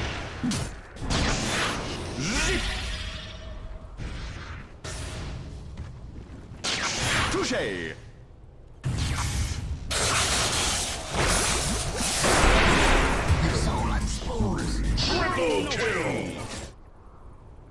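Game spell effects whoosh and crackle in a fast battle.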